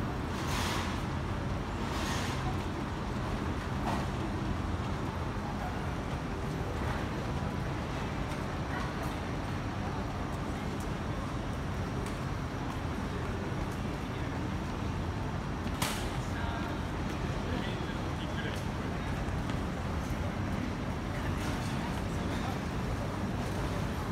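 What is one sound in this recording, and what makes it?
A steady hum of city street noise fills the air outdoors.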